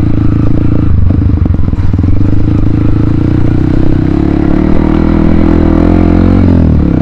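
A small motorbike engine drones steadily close by and its pitch rises later on.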